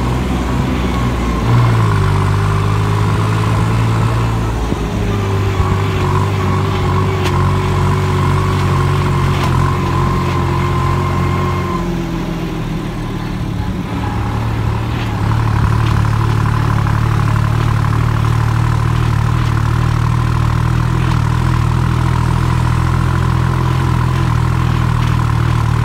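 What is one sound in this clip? Tyres crunch over a rough dirt track.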